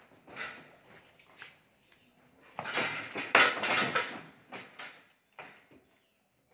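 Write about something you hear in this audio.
A cow's hooves clatter and thud on wooden boards.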